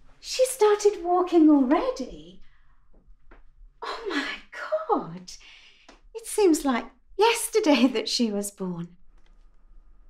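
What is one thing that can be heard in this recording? An older woman talks animatedly on a phone, close by.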